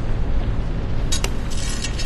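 A sword blade stabs into stony ground.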